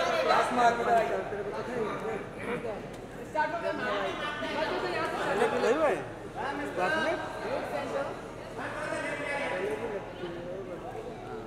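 A woman talks close by, among lively voices.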